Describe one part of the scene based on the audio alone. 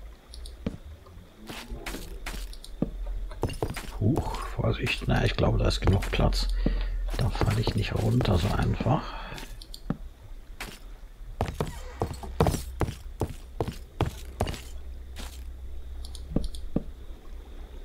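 Wooden blocks thud softly as they are placed, one after another.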